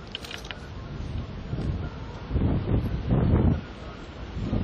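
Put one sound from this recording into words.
Wind gusts across the water outdoors.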